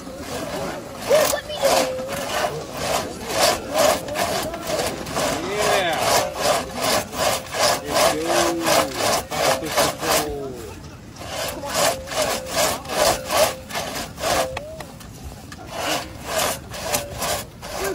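A large saw rasps through a log in quick back-and-forth strokes.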